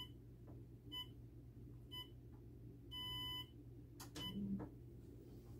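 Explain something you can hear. A treadmill console beeps several times.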